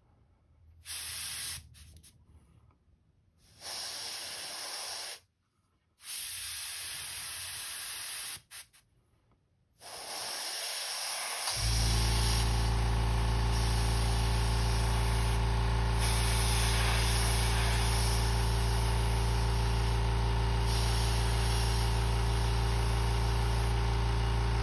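An airbrush hisses in short bursts of spraying.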